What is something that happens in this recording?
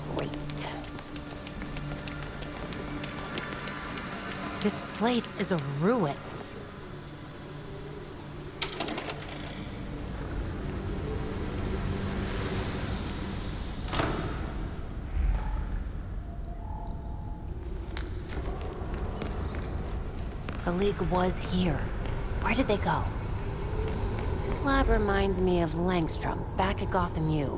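Footsteps run on stone.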